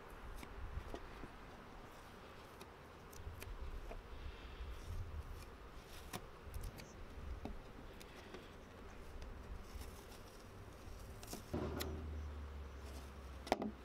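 Fingers rub and scrape on a board.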